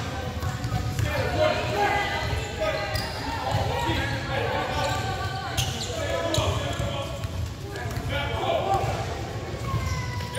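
Young men shout and call out across an echoing gym.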